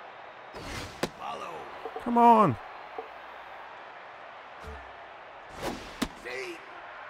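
A baseball smacks into a catcher's mitt.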